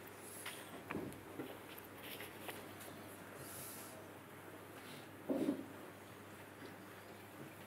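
An elderly man reads aloud softly and slowly.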